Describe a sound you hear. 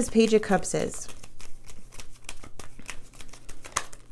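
Playing cards are shuffled and riffle softly by hand.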